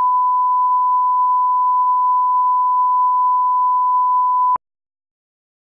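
A steady, high-pitched test tone sounds, then cuts off abruptly into silence.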